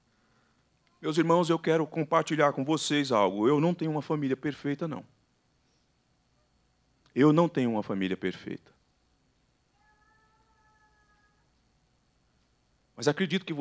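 A man speaks into a microphone with a calm, measured voice.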